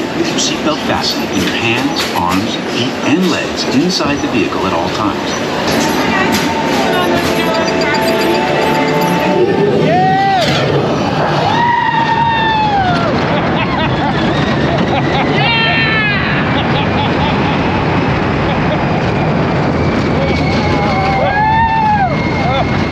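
A ride vehicle rumbles and rattles along a track.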